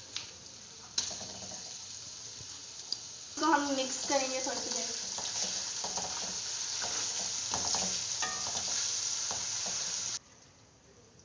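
Food sizzles as it fries in a metal wok.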